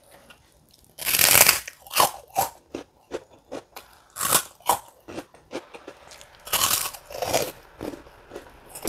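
Crispy food crunches loudly as a young woman bites into it.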